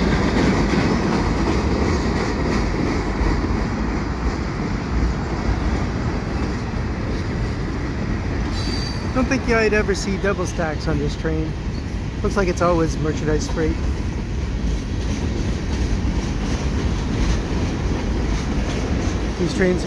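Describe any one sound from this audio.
A freight train rumbles and clatters steadily across a bridge close by.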